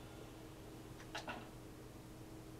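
A heavy door clunks open.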